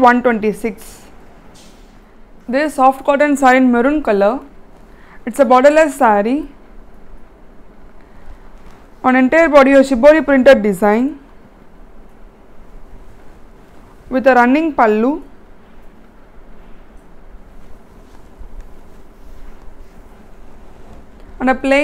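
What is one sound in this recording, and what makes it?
A young woman speaks calmly and clearly, close to a microphone, in short bursts with pauses.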